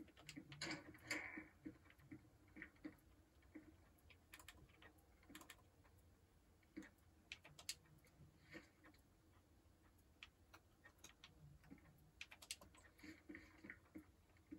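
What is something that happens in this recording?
Footsteps tread on wooden floorboards.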